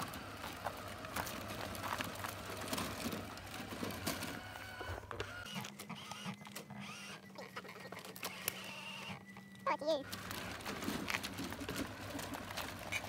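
A small electric motor whirs steadily.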